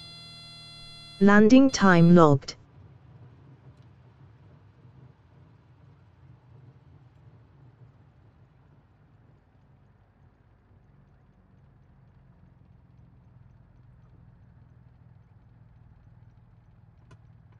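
A small plane's engine idles with a low, steady drone.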